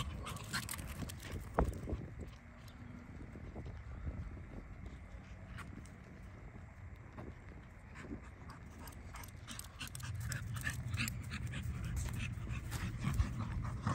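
A dog's paws patter and rustle through dry grass close by.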